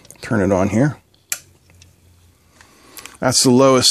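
A plastic dial clicks as a hand turns it.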